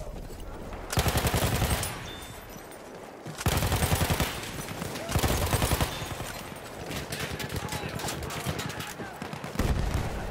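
A machine gun fires in rapid bursts nearby.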